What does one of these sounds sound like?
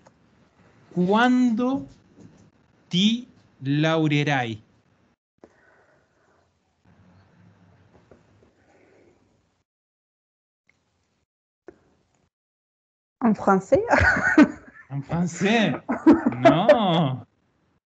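A woman speaks calmly over an online call, in short bursts.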